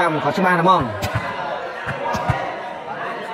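A ball is struck with a thud.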